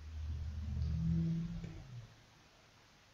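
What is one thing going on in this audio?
A low electronic tone sounds for the countdown start.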